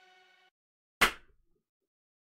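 A man claps his hands once.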